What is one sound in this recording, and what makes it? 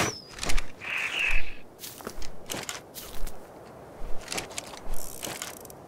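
A crossbow fires an arrow with a sharp snap.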